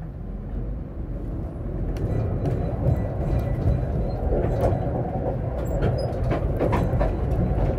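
Tram wheels rumble and clack along the rails.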